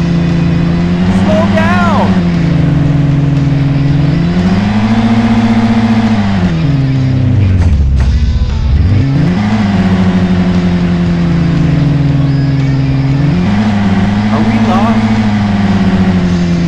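A car engine hums and revs up and down as it accelerates and slows.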